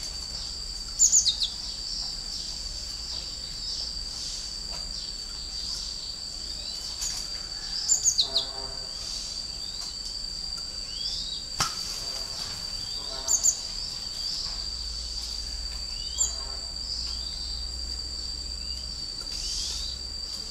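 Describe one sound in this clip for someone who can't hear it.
Many birds chirp faintly in the background.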